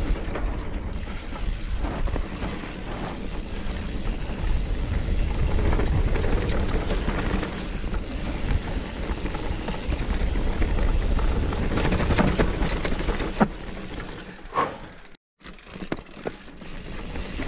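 Bicycle tyres rumble and crunch over a dirt trail.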